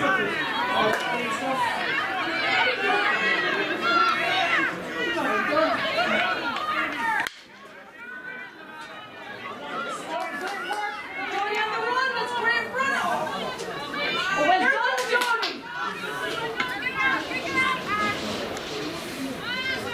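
Young women shout to each other outdoors.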